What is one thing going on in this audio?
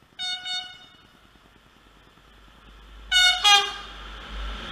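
A train horn blares twice in short blasts.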